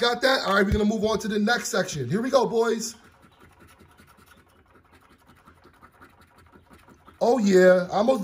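A coin scratches quickly across a card.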